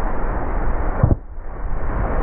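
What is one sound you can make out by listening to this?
A wakeboard lands on water with a heavy splash.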